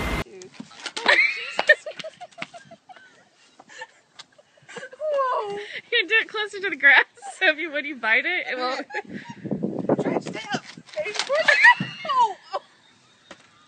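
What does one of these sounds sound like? A woman laughs loudly nearby.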